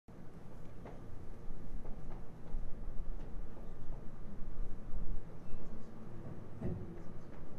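A man strums an acoustic guitar.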